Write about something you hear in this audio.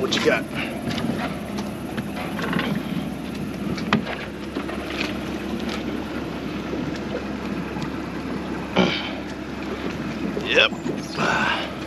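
Water laps gently against a boat hull.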